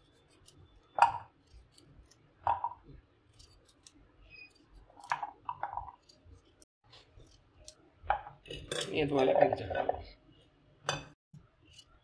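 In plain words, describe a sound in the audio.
Pumpkin pieces drop and clatter into a metal bowl.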